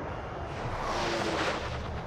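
Heavy naval guns fire with deep booms.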